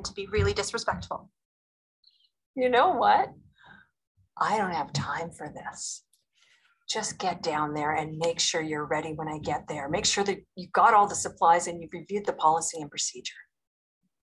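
A woman speaks earnestly, heard through a playback.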